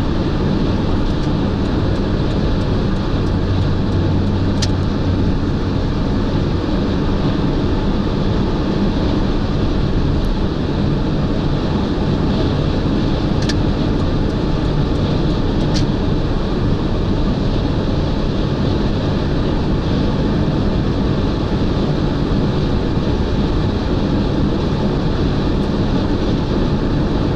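Wind rushes steadily past a moving car.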